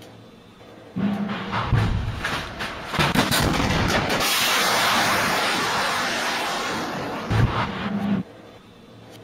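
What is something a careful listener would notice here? A rocket engine roars loudly.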